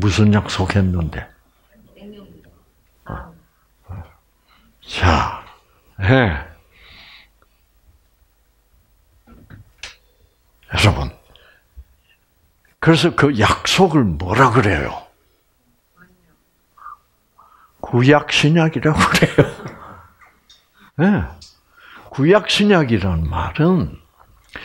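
An elderly man speaks with animation through a headset microphone, in short bursts with pauses.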